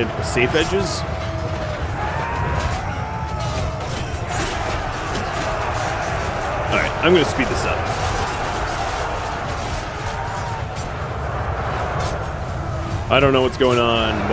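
A large battle rages in a steady roar.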